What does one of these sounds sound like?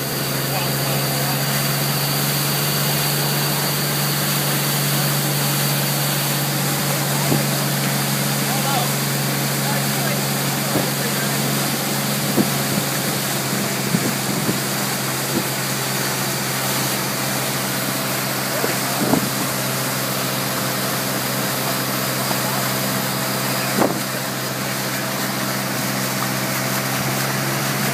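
Wake water churns and splashes behind a boat.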